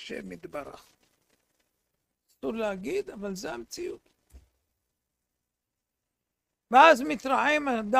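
An elderly man speaks with animation into a close microphone, in bursts with pauses.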